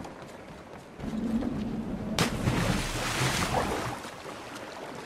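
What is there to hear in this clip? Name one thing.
A body splashes heavily into water.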